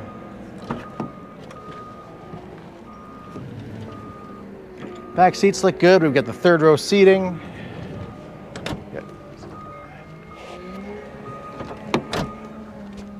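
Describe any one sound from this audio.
A car door latch clicks.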